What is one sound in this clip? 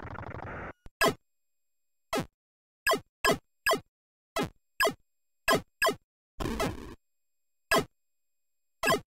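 Retro video game laser shots zap in short, repeated bursts.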